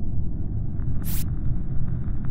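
A short electronic blip sounds as a game panel opens.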